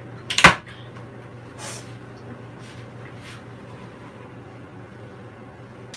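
Dishes clatter in a sink.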